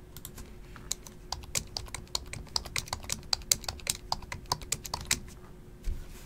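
Fingers type quickly on a computer keyboard, with fast clicking keys.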